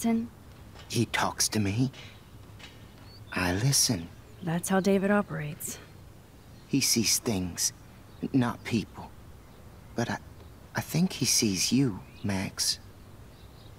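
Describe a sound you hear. A middle-aged man speaks calmly and quietly.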